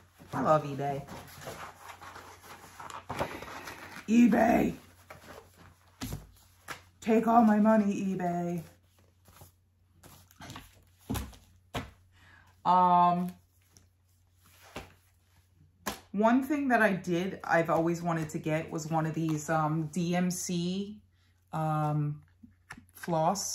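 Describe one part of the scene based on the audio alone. A young woman talks calmly and close by.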